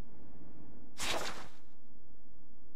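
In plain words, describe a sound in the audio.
A short airy whoosh sweeps past.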